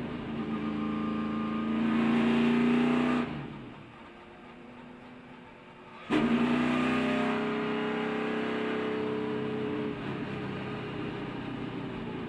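A race car engine roars loudly close by, rising and falling in pitch as the driver shifts and lifts off.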